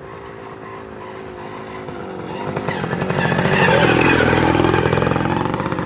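A motorcycle engine approaches, passes close by and drones.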